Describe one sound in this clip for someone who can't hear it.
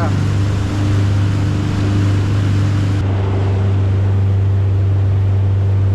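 Water churns and splashes in a boat's wake.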